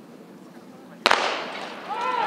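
A starting pistol fires once with a sharp crack.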